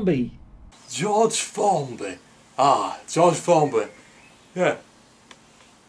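A man speaks thoughtfully close by.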